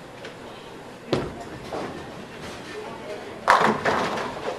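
A bowling ball rumbles down a wooden lane.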